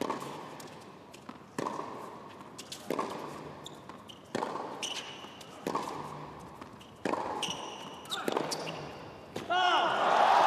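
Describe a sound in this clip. Tennis rackets strike a ball back and forth in a rally, echoing in a large hall.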